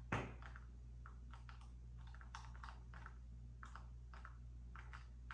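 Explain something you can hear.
Short crunching bite sounds from a video game repeat quickly.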